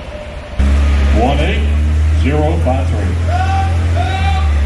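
A man chants bids rapidly over a loudspeaker.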